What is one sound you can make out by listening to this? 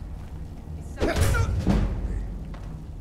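A blade strikes flesh with a heavy thud.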